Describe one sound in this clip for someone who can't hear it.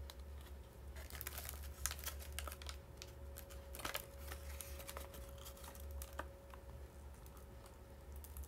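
A paper bag rustles and crinkles up close.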